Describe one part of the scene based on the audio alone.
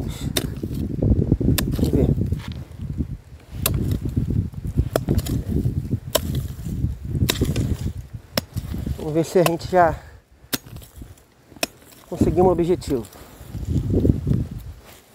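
Flip-flops slap and scuff on dry dirt.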